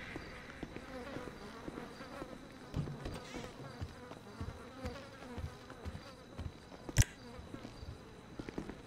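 Footsteps walk steadily across a hard floor.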